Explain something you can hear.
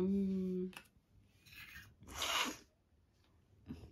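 A metal spoon clinks against a steel cup.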